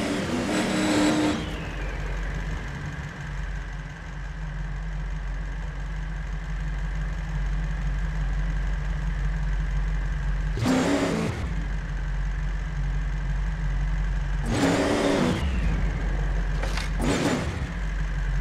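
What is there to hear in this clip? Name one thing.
Tyres skid and crunch on loose dirt in short bursts.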